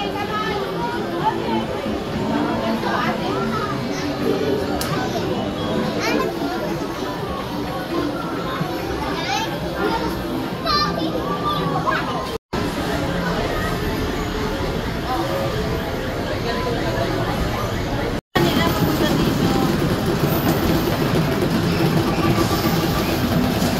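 Arcade machines play jingles and electronic music all around.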